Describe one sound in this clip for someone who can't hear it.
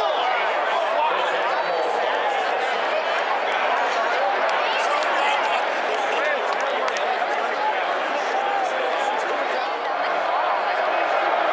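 A large stadium crowd cheers and roars loudly throughout.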